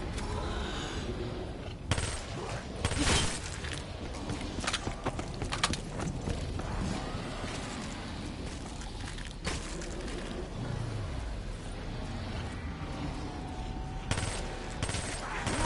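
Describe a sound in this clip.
Zombies groan and snarl as they close in.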